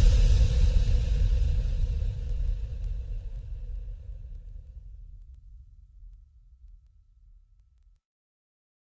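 Music with a deep, pulsing bass plays and slowly fades out.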